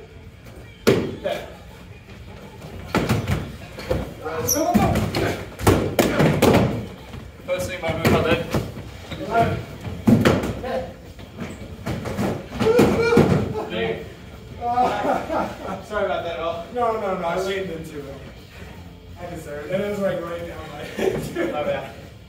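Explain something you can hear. Men shout and talk with animation in an echoing room.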